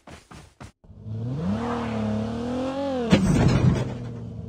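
A car engine revs and roars.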